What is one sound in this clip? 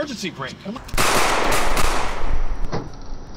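A gunshot bangs loudly.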